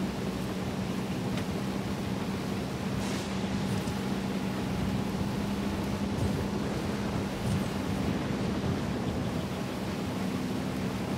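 A motorcycle engine hums steadily as it rides along.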